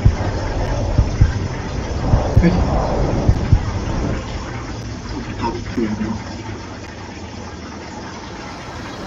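A low rumbling drone hums steadily.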